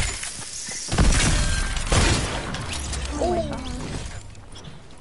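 Loud gunshots crack in quick bursts.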